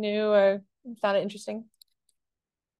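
A young woman talks over an online call.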